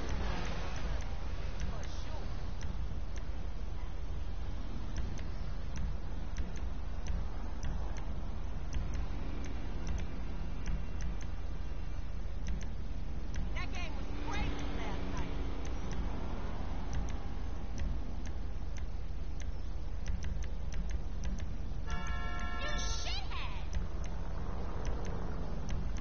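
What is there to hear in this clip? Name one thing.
Music plays from a car radio, changing as stations switch.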